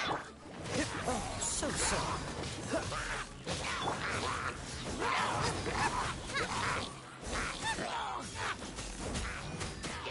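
Icy magic bursts with sharp crackles.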